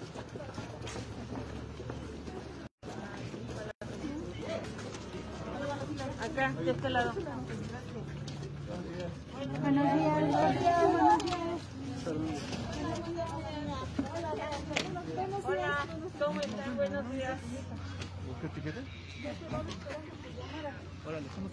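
A crowd of men and women talk and call out close by outdoors.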